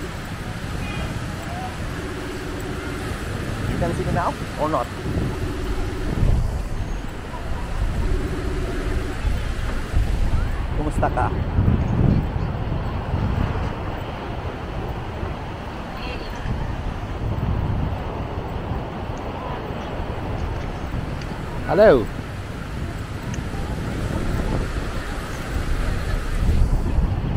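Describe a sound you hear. Wind blows and rumbles across the microphone outdoors.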